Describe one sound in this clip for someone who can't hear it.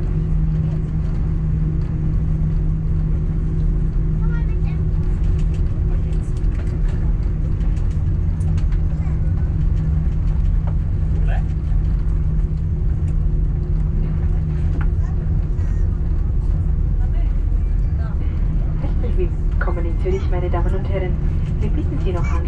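Aircraft wheels rumble and thump over the taxiway.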